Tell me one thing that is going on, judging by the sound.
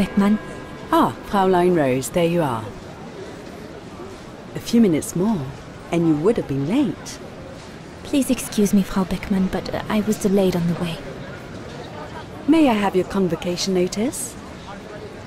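A middle-aged woman speaks calmly and politely.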